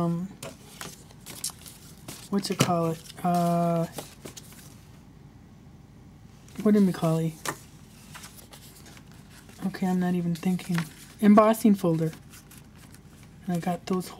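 Paper pages rustle as they are handled and turned.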